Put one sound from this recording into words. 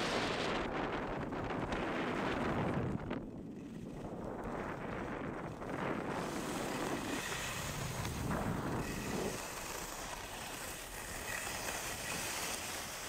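Skis scrape and hiss over packed snow.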